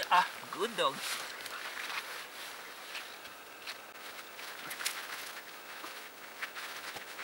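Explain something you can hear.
Moss and twigs rustle and snap as hands pick through the forest floor.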